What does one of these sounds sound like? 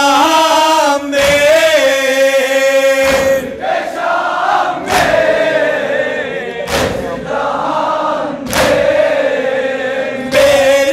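A man chants a lament loudly through a loudspeaker.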